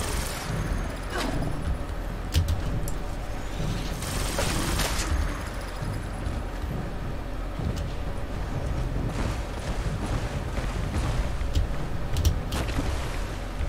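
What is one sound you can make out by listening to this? Heavy metal footsteps thud on soft ground.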